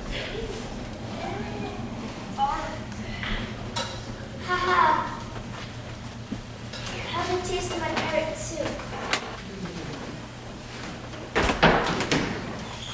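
Children speak their lines at a distance in an echoing hall.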